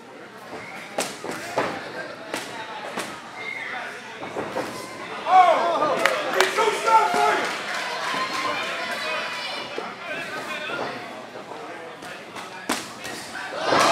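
Boxing gloves thud against bodies in quick bursts.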